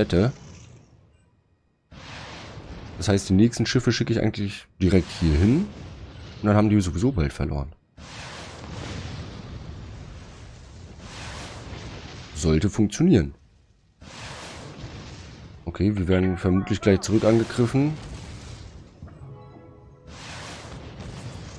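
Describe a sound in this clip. Rockets whoosh through the air and burst in explosions.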